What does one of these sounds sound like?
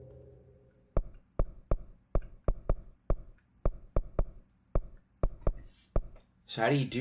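Short clicks tick one after another as a game menu is browsed.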